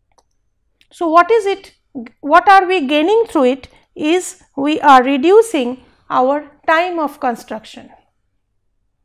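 A woman speaks calmly into a close microphone, as if lecturing.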